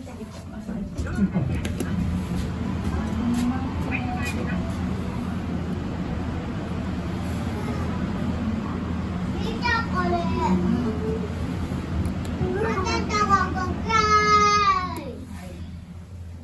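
An elevator car hums steadily as it moves.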